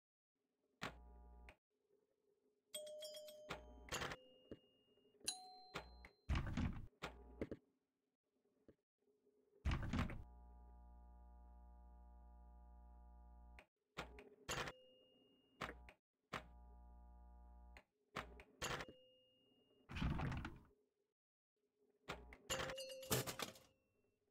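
A pinball machine's bumpers and targets clack and ding as the ball is hit.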